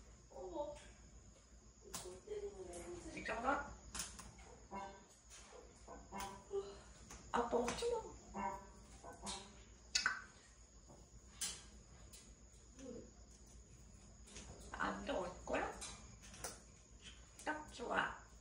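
A parrot talks in a small, human-like voice, close by.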